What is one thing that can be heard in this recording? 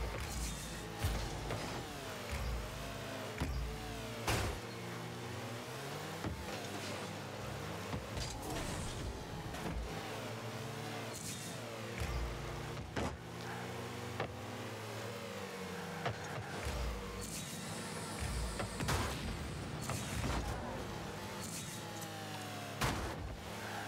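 A ball is struck with sharp thuds.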